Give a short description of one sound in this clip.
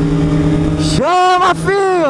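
A motorcycle engine revs up sharply several times.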